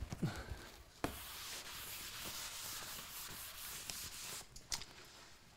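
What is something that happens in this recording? A felt eraser wipes across a chalkboard with a soft steady rubbing.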